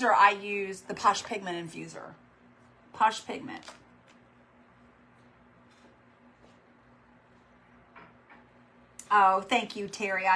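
A middle-aged woman talks expressively, close by, in short bursts with pauses.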